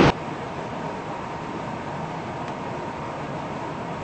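Subway train doors slide open.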